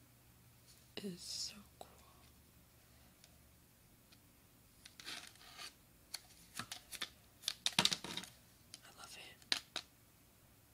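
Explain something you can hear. A plastic package crinkles and taps as it is handled.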